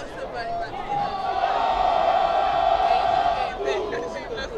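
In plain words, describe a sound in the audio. A brass band blasts a loud, sustained chord.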